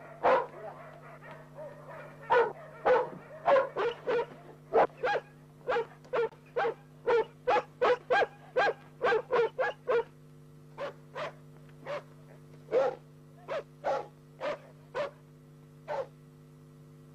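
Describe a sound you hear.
Dogs bark loudly and repeatedly, close by.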